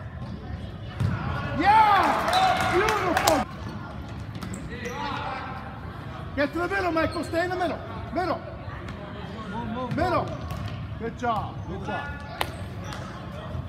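Children shout and cheer loudly in a large echoing hall.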